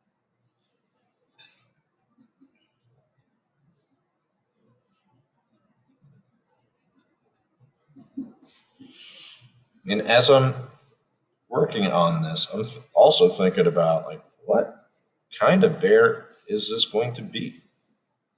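A felt-tip marker squeaks and scratches softly across paper.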